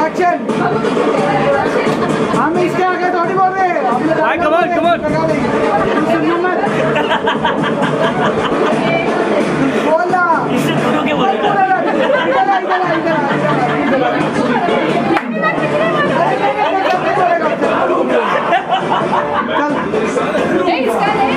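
Upbeat music with singing plays loudly through a loudspeaker.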